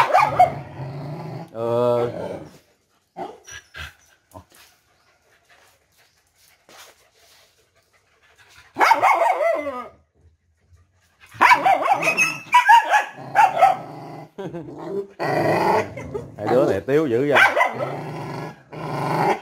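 Several dogs growl and snarl at each other up close.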